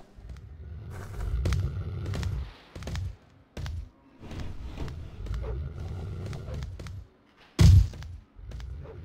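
Punches land with dull thuds.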